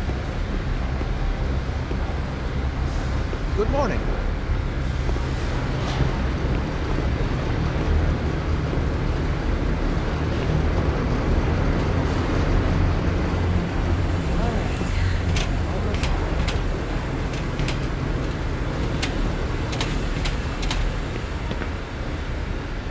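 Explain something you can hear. A ventilation system hums low and steadily.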